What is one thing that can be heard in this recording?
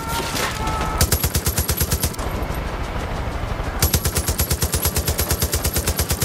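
An automatic gun fires rapid bursts of shots.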